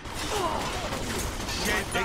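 Gunshots fire in a game.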